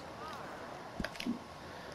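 Footsteps fall softly on grass.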